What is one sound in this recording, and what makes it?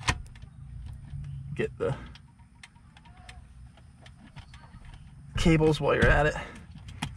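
Plastic trim clicks and rattles.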